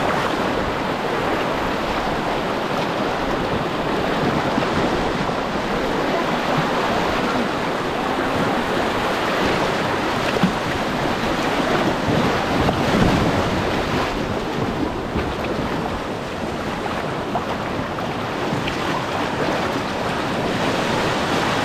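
A fast river rushes and splashes loudly over rocks.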